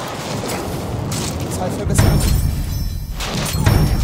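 An explosion booms and crackles with fire.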